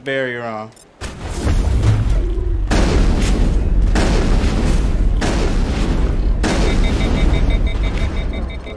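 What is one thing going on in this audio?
Rapid gunfire rattles loudly and continuously.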